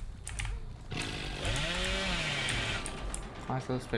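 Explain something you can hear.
A chainsaw revs loudly.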